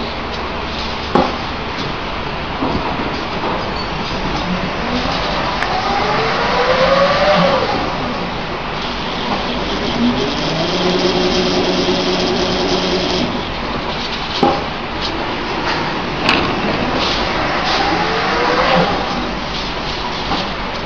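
A machine runs with a steady mechanical whir.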